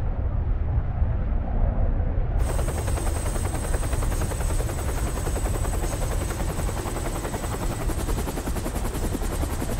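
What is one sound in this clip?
A volcano rumbles deeply.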